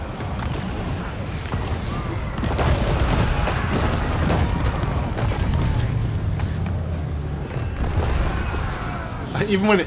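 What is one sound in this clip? Heavy crashing blows land as a huge creature smashes into a crowd of soldiers.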